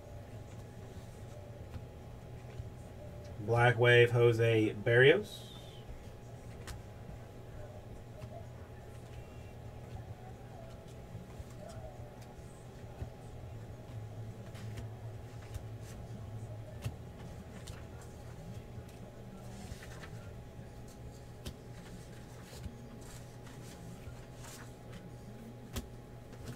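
Cards rustle and slide against each other as they are shuffled by hand.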